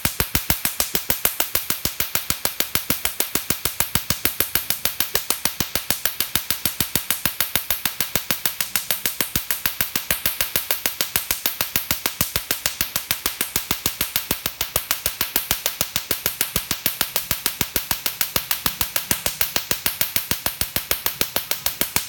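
A laser device snaps in rapid, even clicks.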